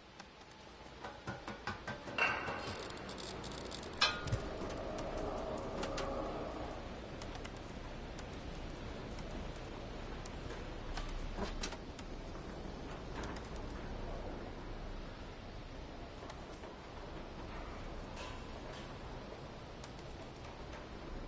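A cat's paws patter and thump on a sheet metal roof.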